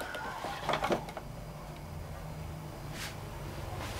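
Plastic parts click and knock as they are fitted together.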